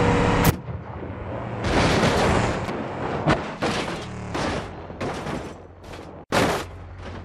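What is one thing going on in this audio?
A car engine roars as a vehicle speeds along a gravel road.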